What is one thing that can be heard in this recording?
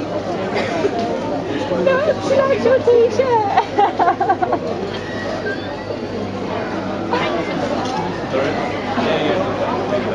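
A young woman laughs and talks cheerfully close by.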